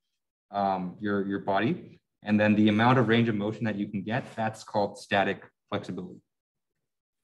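A young man speaks calmly through a microphone on an online call.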